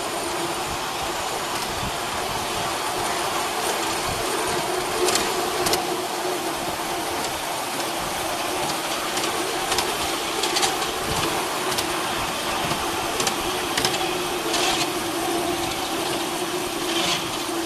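A small train rolls along the rails with a steady hum.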